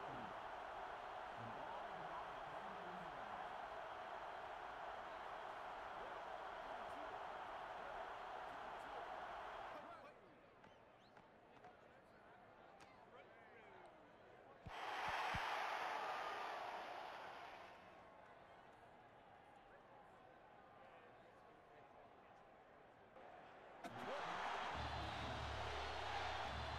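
A large stadium crowd roars and cheers in waves.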